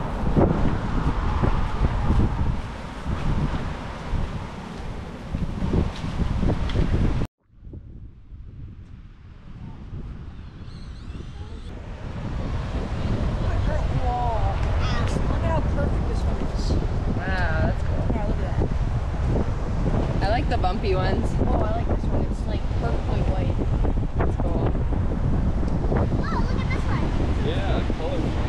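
Wind blows outdoors, rumbling against the microphone.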